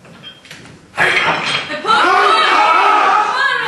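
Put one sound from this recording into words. A man grunts and shouts loudly with effort.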